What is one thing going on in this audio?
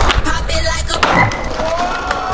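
A skateboard slams down hard on stone.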